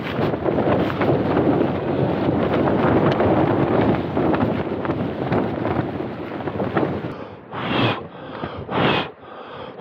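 Tent fabric rustles and flaps in the wind.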